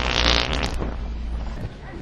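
A man sips loudly through a straw.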